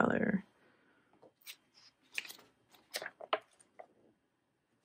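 Magazine pages rustle as they are turned.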